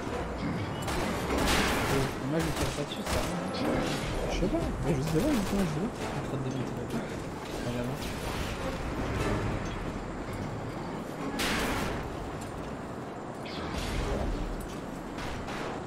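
Pistol shots ring out in bursts, echoing sharply.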